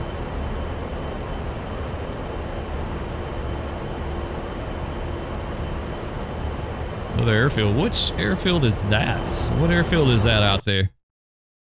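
A jet engine drones steadily from inside the cockpit.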